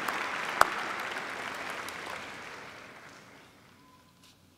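A large crowd applauds in a big echoing hall, then the applause fades away.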